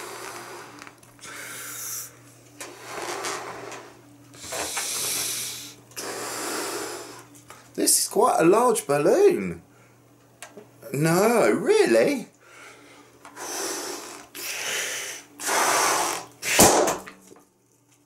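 A man blows hard into a balloon in long breaths.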